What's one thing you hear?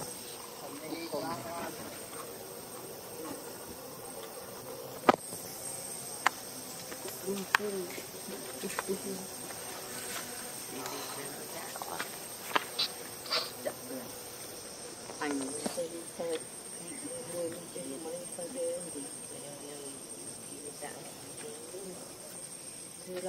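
A monkey chews and smacks on food up close.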